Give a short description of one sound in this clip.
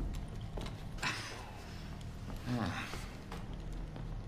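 A man groans in pain.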